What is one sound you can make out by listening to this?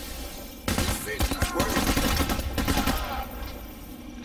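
A rifle fires in loud bursts, echoing indoors.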